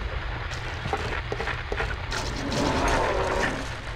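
Footsteps patter quickly as someone runs.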